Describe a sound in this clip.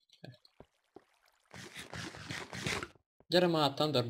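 A block of stone cracks and crumbles as it is dug out.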